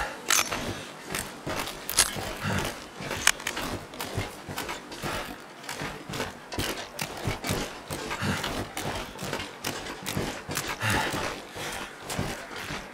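Footsteps crunch steadily on snow and ice.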